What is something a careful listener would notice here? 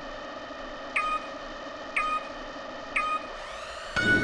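A countdown beeps three times at even pace.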